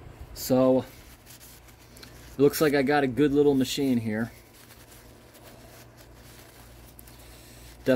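A paper towel rustles as it wipes a dipstick.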